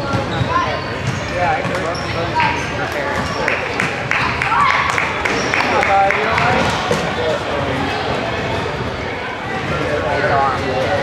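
A crowd of children and adults chatters in a large echoing gym.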